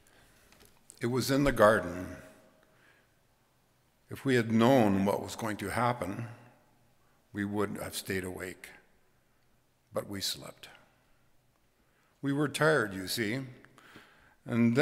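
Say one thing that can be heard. An elderly man reads out calmly through a microphone.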